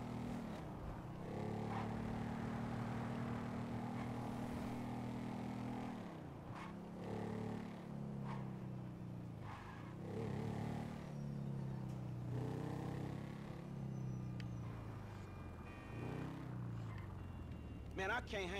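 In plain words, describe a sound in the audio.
A small motorbike engine buzzes and revs up and down.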